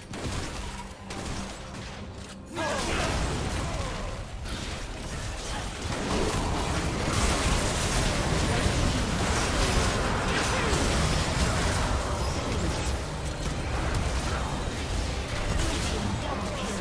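Spell effects whoosh and crackle in a busy game fight.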